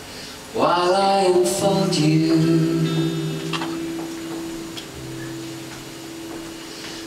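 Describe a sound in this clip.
A man sings through a microphone, holding long notes over a live sound system.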